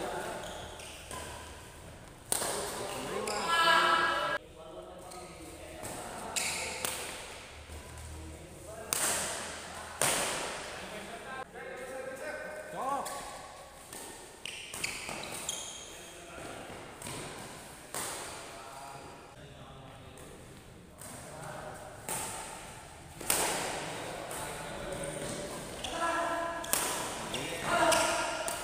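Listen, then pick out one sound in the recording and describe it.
Sneakers squeak and patter on a court floor.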